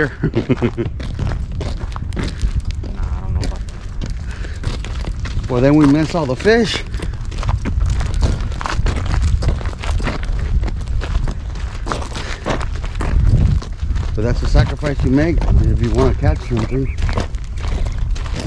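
A man talks calmly close by, outdoors.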